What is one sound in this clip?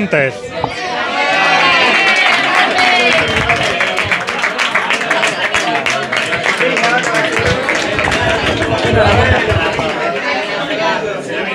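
A small crowd applauds.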